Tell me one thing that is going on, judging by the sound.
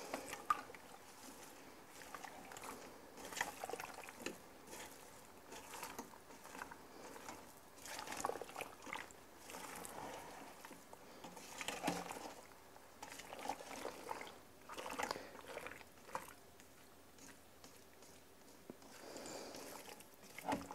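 A spoon scrapes and clinks against a metal pot.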